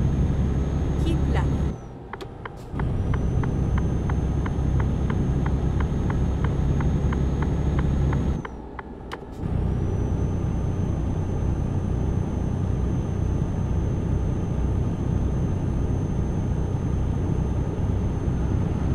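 A truck engine drones steadily in a cab, dropping away briefly twice.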